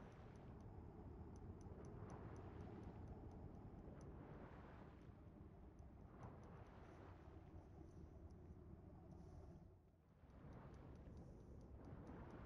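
Deep water rumbles in a low, muffled hum.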